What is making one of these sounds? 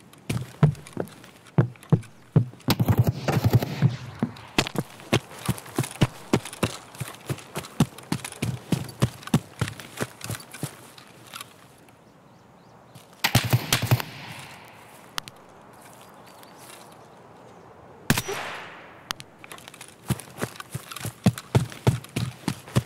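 Footsteps crunch over gravel and grass.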